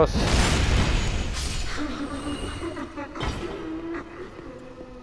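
A burst of fire roars and hisses away.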